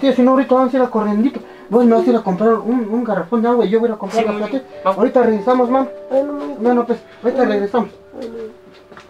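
A man talks with emotion close by.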